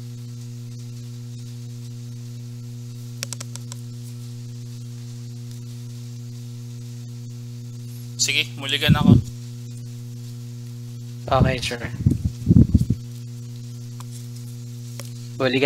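Playing cards rustle and slide as hands handle them.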